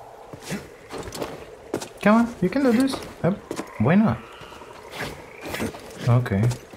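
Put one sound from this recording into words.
Hands and feet scrape and thud against rock during a climb.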